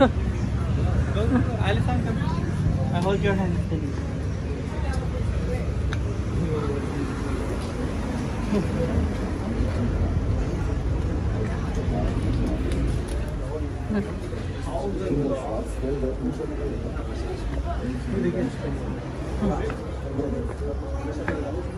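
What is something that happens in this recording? A crowd of people chatters in the background.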